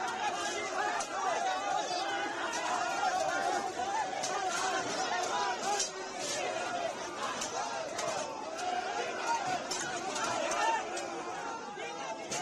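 Metal barricades clatter and bang as they are pushed.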